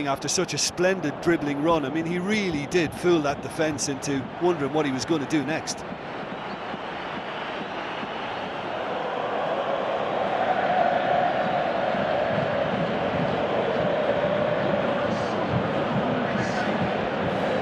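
A large stadium crowd roars steadily, swelling louder.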